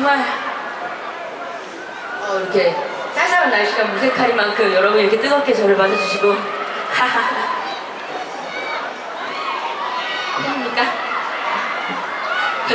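A woman sings into a microphone, amplified through loudspeakers outdoors.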